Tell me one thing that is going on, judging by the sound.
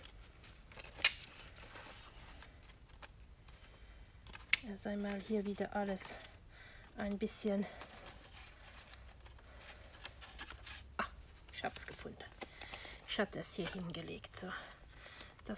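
Paper sheets tap and click against a hard surface.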